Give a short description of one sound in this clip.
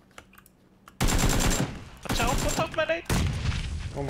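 A rifle fires a burst of rapid shots close by.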